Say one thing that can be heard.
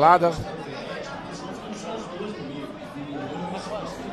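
Pool balls click together on a table.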